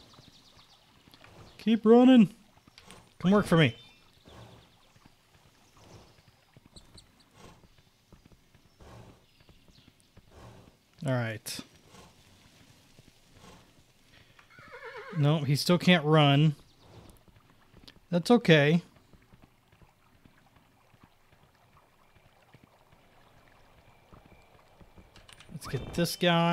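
A horse's hooves clop steadily along the ground.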